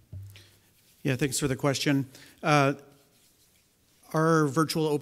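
A second man speaks steadily into a microphone.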